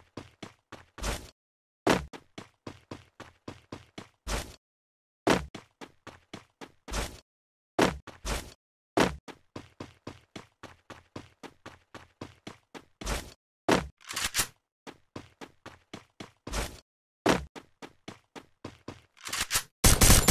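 Running footsteps patter on the ground.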